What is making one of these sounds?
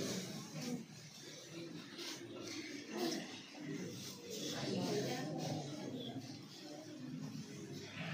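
Several men talk nearby in a murmur.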